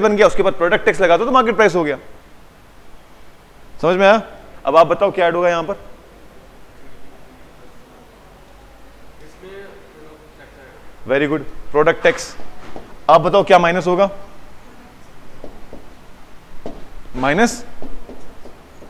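A man speaks calmly into a clip-on microphone, explaining in bursts with pauses.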